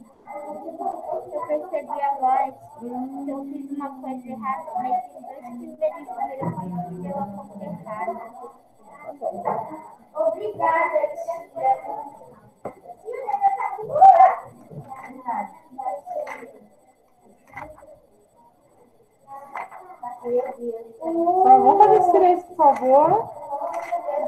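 A woman speaks calmly through a microphone in an online call.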